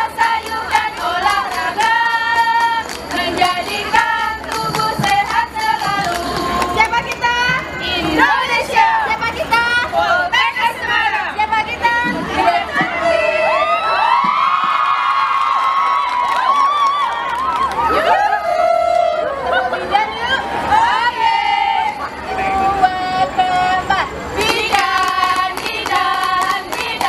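A group of young women chant and sing in unison through a loudspeaker outdoors.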